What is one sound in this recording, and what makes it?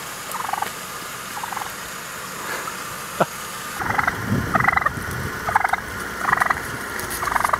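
A turkey gobbles in quick, rattling bursts close by.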